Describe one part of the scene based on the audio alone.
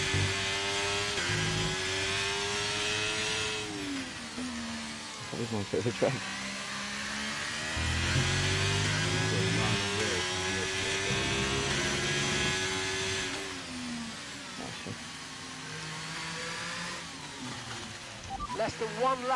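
A racing car engine screams at high revs, rising and falling as gears shift.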